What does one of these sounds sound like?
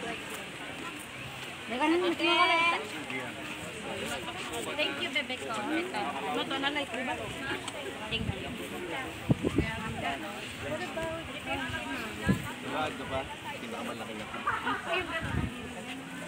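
Several women talk nearby.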